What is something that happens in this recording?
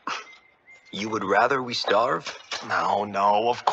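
A second young man answers with a scoff.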